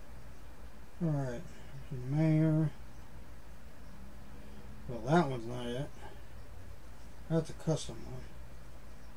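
A middle-aged man speaks in short, calm phrases close to the microphone.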